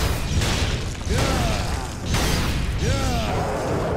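A heavy weapon clashes against a blade in close combat.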